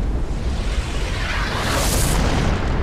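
An energy beam fires with a loud roaring whoosh.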